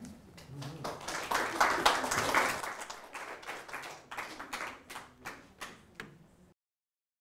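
An audience applauds, the clapping fading to scattered claps.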